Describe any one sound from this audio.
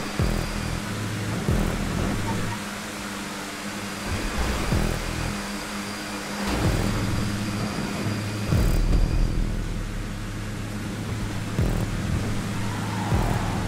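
A race car engine roars steadily at high speed, shifting gears now and then.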